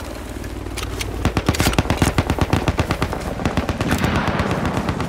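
A metal launcher clanks and rattles as it is reloaded.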